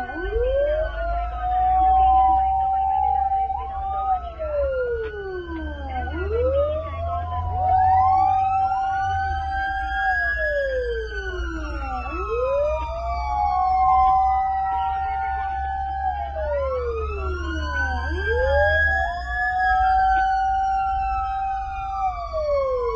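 A siren wails loudly, rising and falling over and over.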